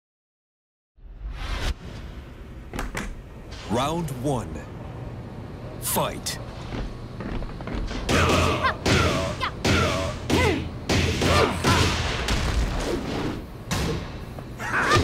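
Punches and kicks land with sharp thuds in a fighting game.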